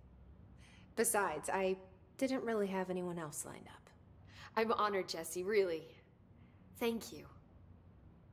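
A woman speaks calmly in a low voice, close by.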